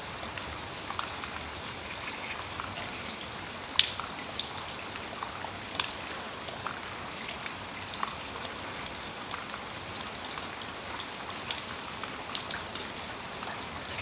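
Water drips tap irregularly on a metal awning.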